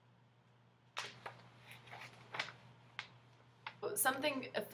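Paper rustles as a sheet is handled.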